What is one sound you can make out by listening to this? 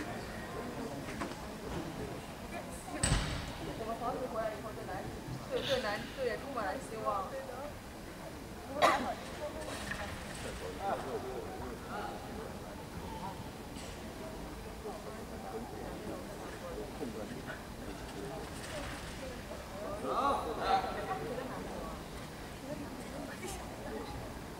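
Parallel bars creak and thump as a gymnast swings on them.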